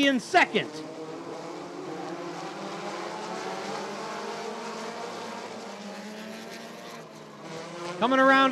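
Several small racing car engines whine and buzz as the cars race around a track.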